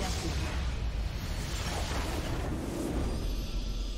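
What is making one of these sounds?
A booming explosion rumbles as a structure crumbles.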